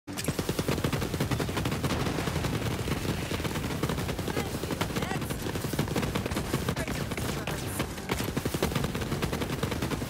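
Bullets crackle and spark against a target.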